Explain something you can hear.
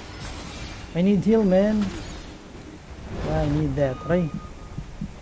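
A young man talks into a nearby microphone.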